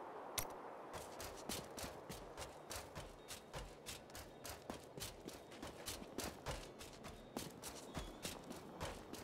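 Footsteps tread quickly and steadily on the ground.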